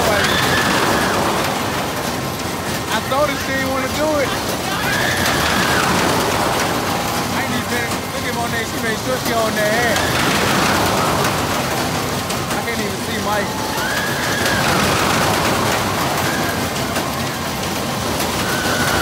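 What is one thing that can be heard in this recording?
A large fairground ride swings back and forth with a rushing whoosh that swells and fades.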